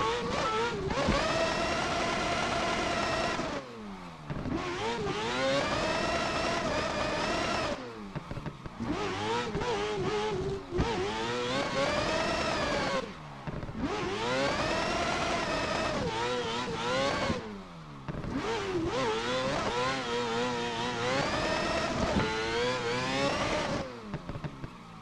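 A racing car engine revs high, rising and dropping sharply as gears change.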